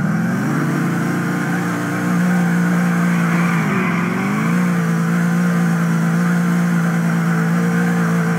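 A car engine roars loudly, revving up and down.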